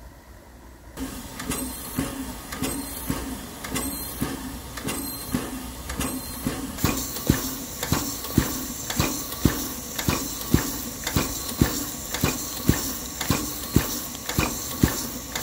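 A steam locomotive's pump thumps and puffs in a steady rhythm, close by.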